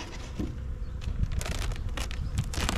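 A plastic sheet crinkles and rustles.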